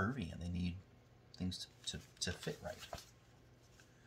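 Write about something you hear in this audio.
Scissors snip through fabric.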